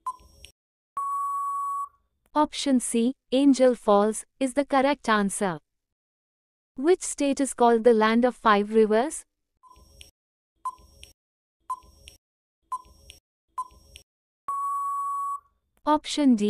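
An electronic buzzer beeps once in a long, steady tone.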